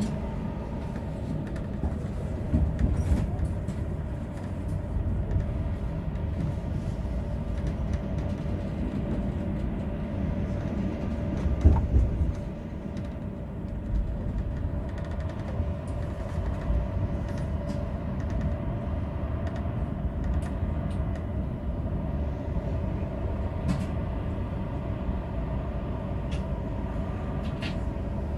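A tram hums and rumbles steadily along its rails.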